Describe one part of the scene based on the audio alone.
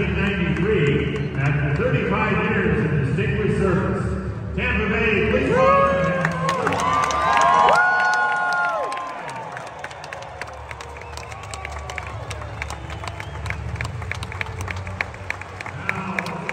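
A large crowd cheers and claps in a big echoing arena.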